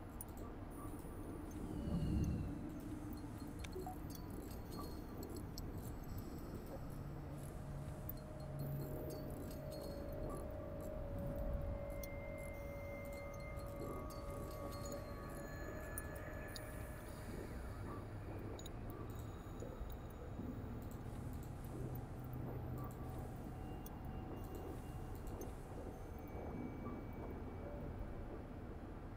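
Short electronic beeps and clicks sound now and then.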